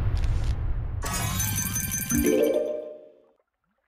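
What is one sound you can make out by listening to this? A bright chiming jingle plays.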